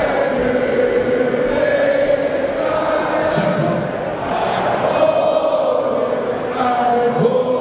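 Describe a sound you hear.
Loud music plays through loudspeakers in a large echoing space.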